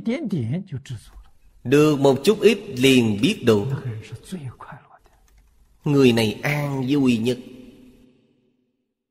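An elderly man speaks calmly and warmly into a microphone.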